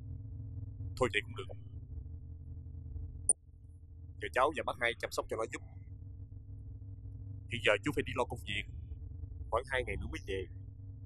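A middle-aged man speaks into a phone in short, tense bursts, heard up close.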